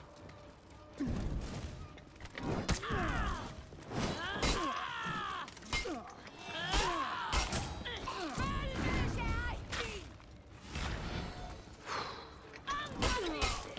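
Steel swords clash and ring sharply, again and again.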